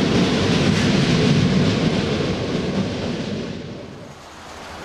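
A train rumbles past on the tracks.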